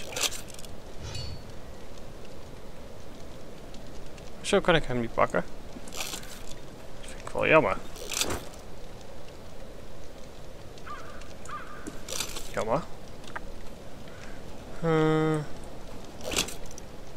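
A fire crackles and burns steadily.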